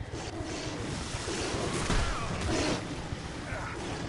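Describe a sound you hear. A monster lets out a deep, rasping growl.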